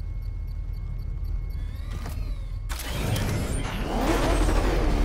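A powerful car engine rumbles and roars.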